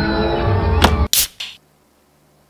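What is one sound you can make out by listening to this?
A can pops open with a hiss.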